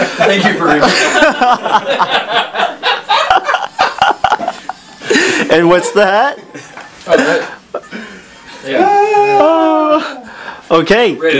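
A middle-aged man talks and laughs with animation close by.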